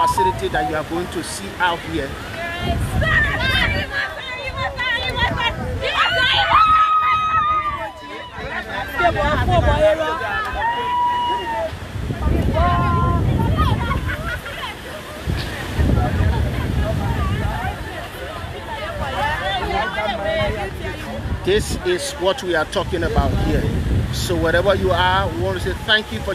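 A crowd of men and women chatter and call out loudly outdoors.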